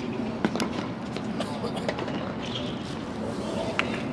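A tennis ball bounces on a hard court before a serve.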